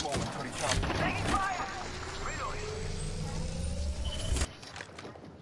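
A shield battery charges up with a rising hum.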